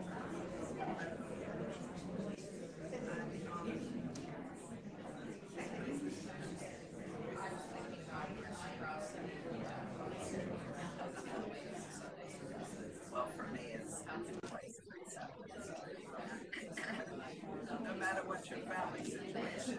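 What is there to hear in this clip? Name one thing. A man speaks calmly through a microphone in a large echoing room.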